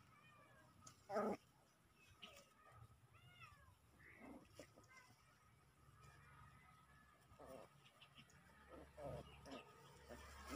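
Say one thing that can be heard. Small puppies yip and squeal as they play close by.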